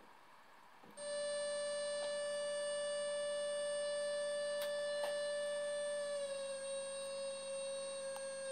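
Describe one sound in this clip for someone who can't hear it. A synthesizer plays a steady, buzzing drone that shifts slightly in pitch near the end.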